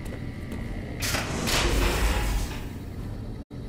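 A heavy metal door slides open with a loud whooshing rumble.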